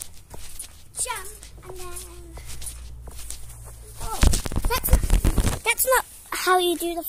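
A young girl squeals and shouts excitedly close by.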